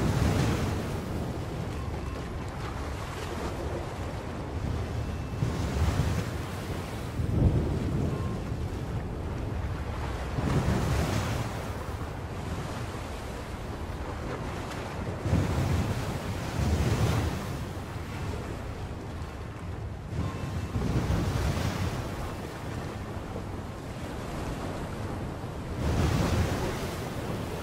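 Rough waves surge and crash in a strong sea.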